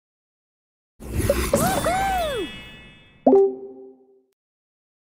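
A cheerful game victory jingle plays with sparkling chimes.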